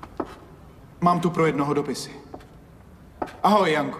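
A middle-aged man speaks firmly nearby.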